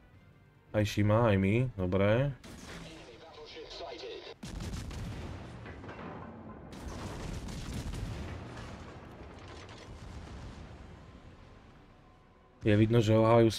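Heavy naval guns fire with deep, rumbling booms.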